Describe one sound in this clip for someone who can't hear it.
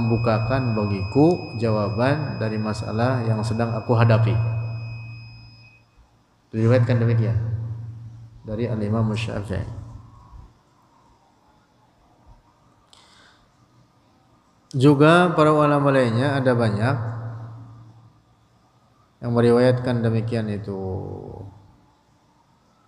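A young man chants melodically into a close microphone, in phrases with pauses between them.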